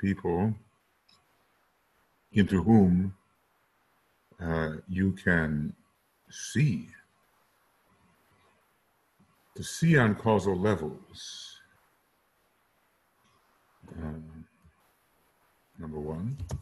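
An elderly man speaks calmly through a microphone, in short phrases with pauses.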